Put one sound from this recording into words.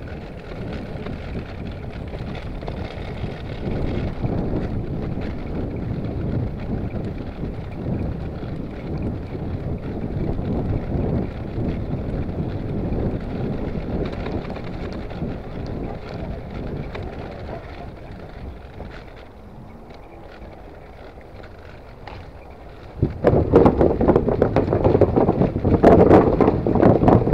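Wind rumbles against the bicycle as it rides along.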